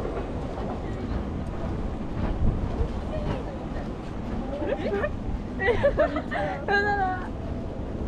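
Footsteps pass on a walkway.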